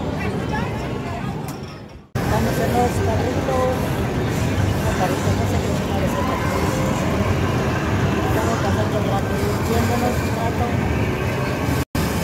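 Arcade machines play loud electronic music and sound effects.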